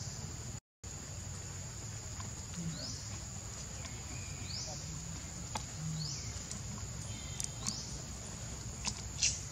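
Dry leaves rustle as a baby monkey paws at the ground.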